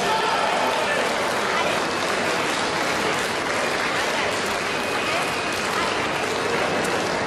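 A crowd murmurs and chatters steadily in a large echoing hall.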